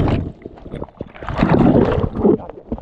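Water churns and roars underwater in a muffled rush.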